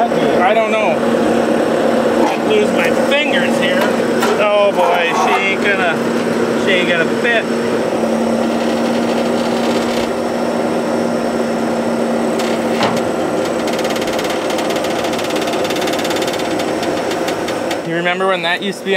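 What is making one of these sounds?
A tracked loader's engine runs with a steady hum.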